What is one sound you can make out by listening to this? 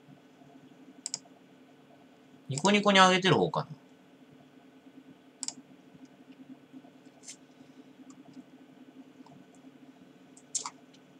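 Keyboard keys click sharply now and then.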